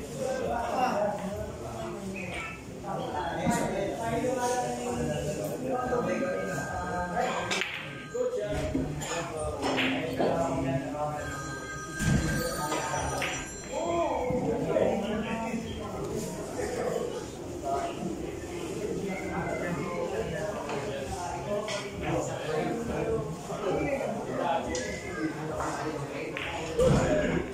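Men talk nearby.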